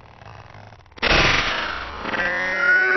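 A young boy cries out loudly in alarm.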